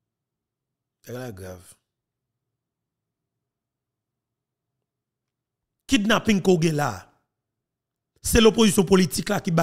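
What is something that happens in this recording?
A man speaks into a close microphone in short bursts, with pauses between.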